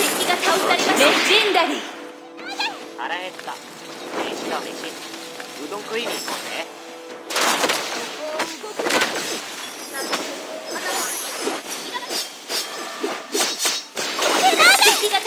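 Fantasy video game spell effects crackle and whoosh in quick bursts.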